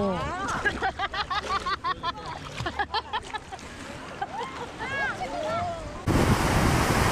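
A woman laughs and talks excitedly up close.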